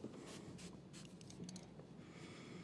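A spray bottle hisses in short squirts.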